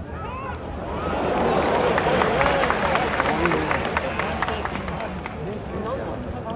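A stadium crowd roars in a rising cheer that slowly fades.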